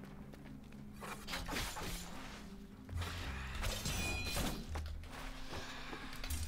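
Blades whoosh and clang in a fast sword fight.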